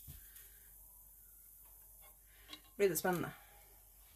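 Wet yarn drips and splashes into a pot of liquid.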